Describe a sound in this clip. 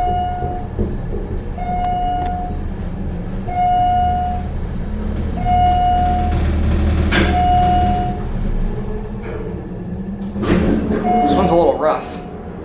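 An elevator chime beeps as each floor passes.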